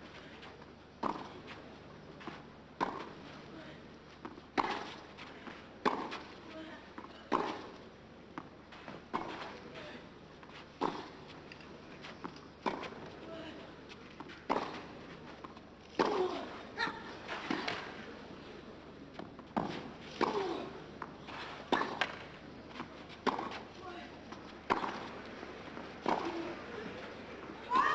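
Tennis balls are struck with a sharp pop in a steady rally.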